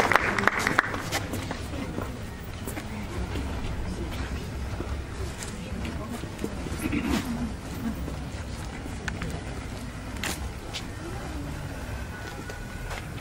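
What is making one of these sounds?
Footsteps knock on a hard floor in an echoing hall.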